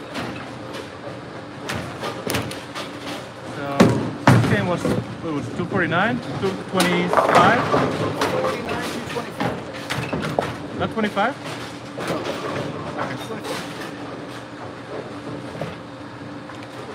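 Bowling pins crash and clatter in a large echoing hall.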